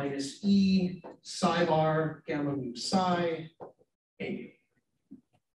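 A man speaks calmly, heard through a microphone in a room.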